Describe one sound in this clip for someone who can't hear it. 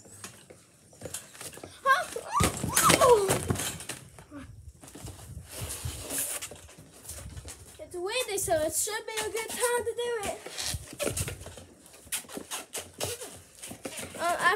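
A trampoline thumps and creaks as a boy bounces on it.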